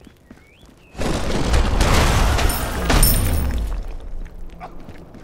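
A magic spell bursts with a loud rushing whoosh and a deep falling rumble.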